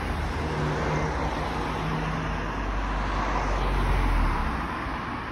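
A car drives along a road nearby.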